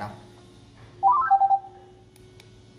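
A short rising electronic chime rings out from a tablet game.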